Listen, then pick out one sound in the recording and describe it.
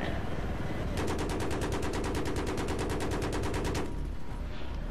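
An aircraft cannon fires in a rapid, steady burst.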